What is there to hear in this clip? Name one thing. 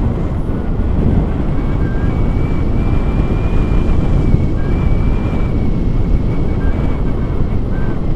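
Strong wind rushes and buffets loudly outdoors.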